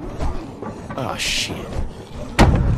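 A young man curses.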